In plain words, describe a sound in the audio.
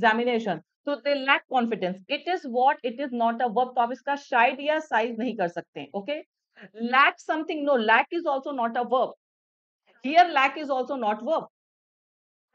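A young woman speaks clearly and with animation into a close microphone.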